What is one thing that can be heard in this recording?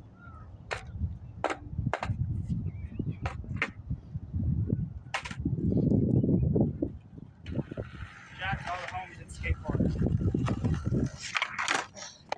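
Skateboard wheels roll and rumble over concrete outdoors.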